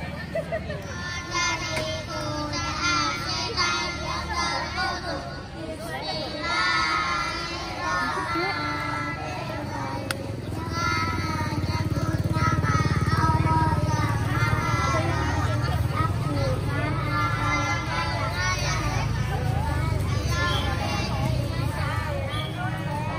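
A crowd of children and adults chatter outdoors.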